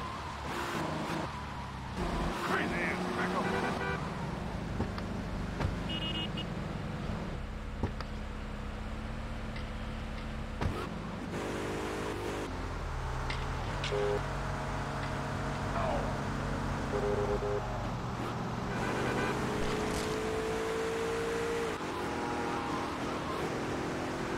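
A car engine hums and revs as a vehicle drives.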